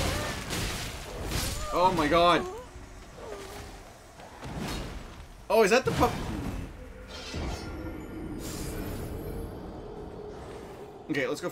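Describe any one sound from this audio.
Blades clash and slash in a fight.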